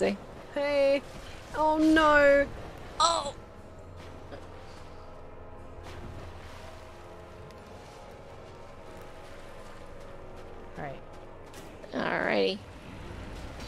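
A young woman exclaims loudly in high, drawn-out cries close to a microphone.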